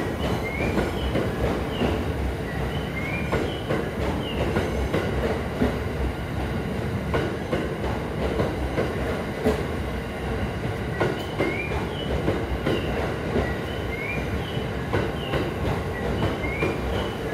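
Wheels squeal on the rails.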